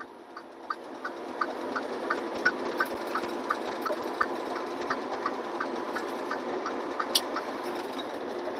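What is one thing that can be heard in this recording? Tyres thump rhythmically over joints in the road.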